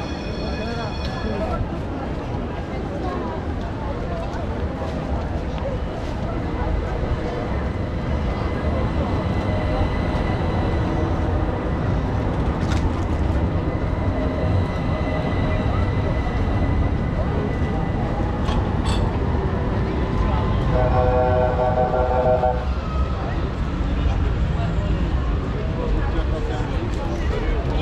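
A busy crowd murmurs and footsteps shuffle on a street outdoors.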